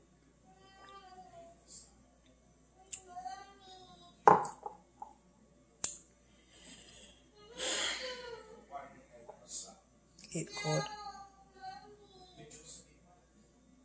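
A woman gulps a drink.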